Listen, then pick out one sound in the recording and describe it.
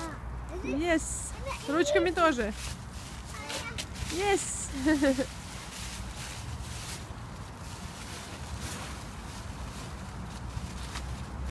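Dry leaves rustle and crunch as small children shuffle through them.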